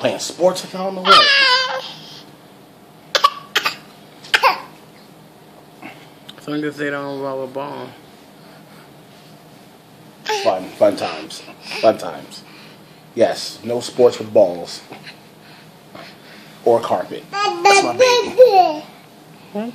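A baby squeals with delight.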